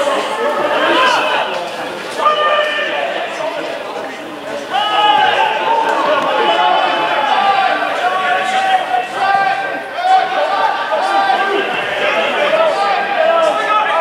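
Men shout and call out to each other across an open pitch.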